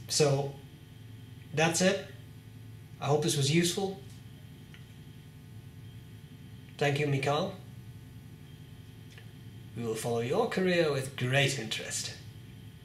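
A young man speaks calmly in short phrases, close to a microphone, with pauses between them.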